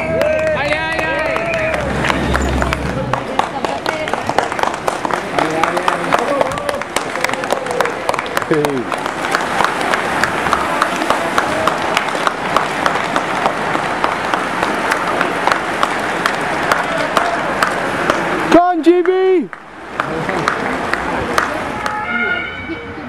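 A crowd of spectators claps and applauds.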